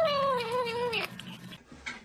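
A cat crunches dry food.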